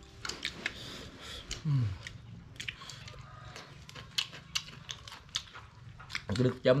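Young men crunch on crisp food while eating.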